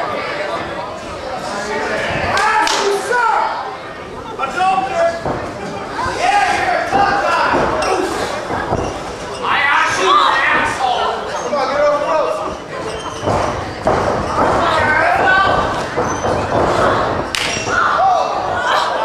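A small crowd shouts and cheers.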